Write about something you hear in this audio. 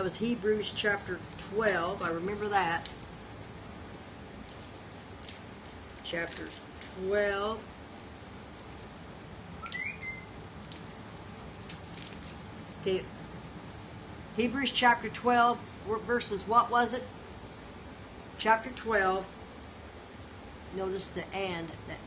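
An older woman speaks calmly and close by, in bursts with pauses.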